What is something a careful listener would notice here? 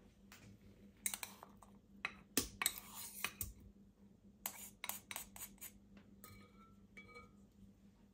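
A spoon scrapes and taps against a bowl.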